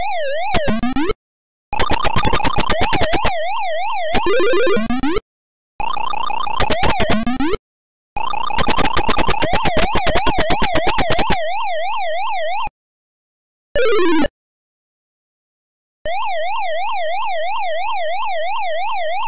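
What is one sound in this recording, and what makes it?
A game's electronic siren warbles up and down steadily.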